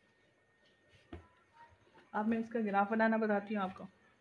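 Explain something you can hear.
A hand rubs and smooths cloth with a soft rustle.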